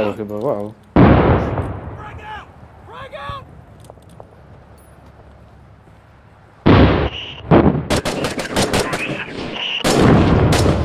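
Explosions boom nearby and rumble away.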